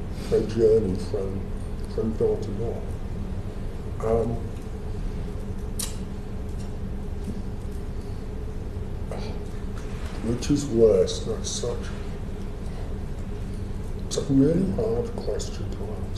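A middle-aged man speaks haltingly in short bursts into a microphone.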